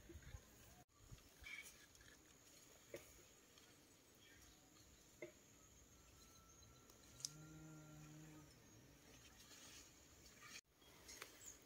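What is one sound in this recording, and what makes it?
Leafy plants rustle as a person brushes through them.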